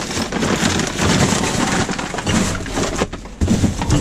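Cardboard scrapes and thuds as it is shifted.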